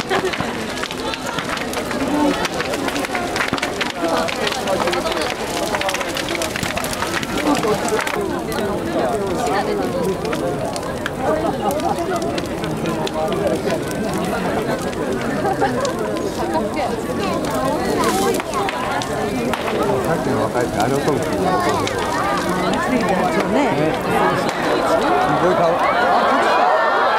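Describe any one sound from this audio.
A large bonfire roars and crackles loudly.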